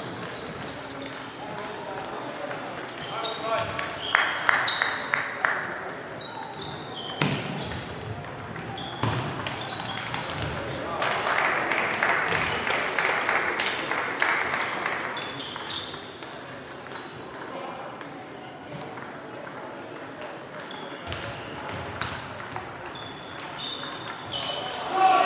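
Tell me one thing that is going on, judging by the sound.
A crowd of players murmurs in the background.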